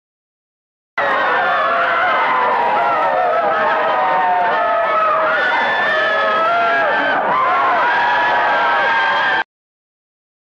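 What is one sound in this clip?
Women scream loudly and shrilly.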